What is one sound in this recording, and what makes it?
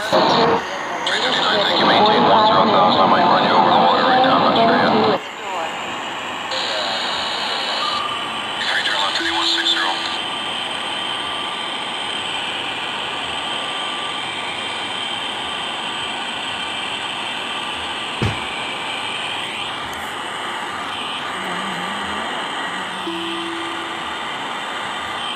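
A jet engine hums steadily while an airliner taxis.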